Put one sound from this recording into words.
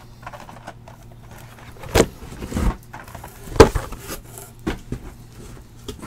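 Cardboard boxes knock and rustle as they are handled.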